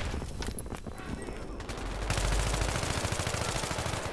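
Rapid gunfire rattles in short bursts.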